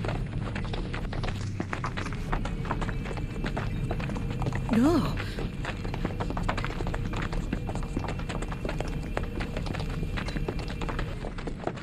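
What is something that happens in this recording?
Footsteps crunch on a rocky floor.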